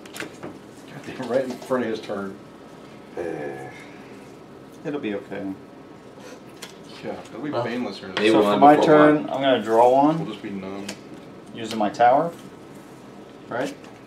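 Men talk casually close by.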